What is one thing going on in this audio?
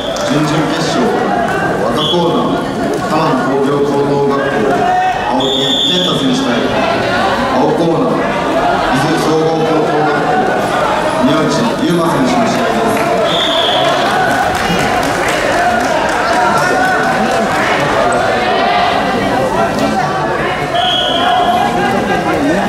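Several men shout encouragement in a large echoing hall.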